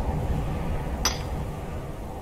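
A pickaxe strikes rock with a sharp clink.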